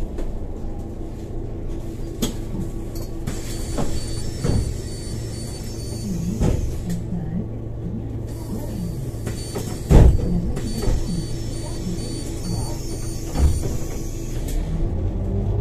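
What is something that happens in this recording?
A vehicle engine idles with a low, steady rumble.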